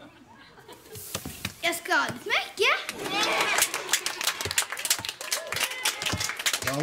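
Children clap their hands quickly.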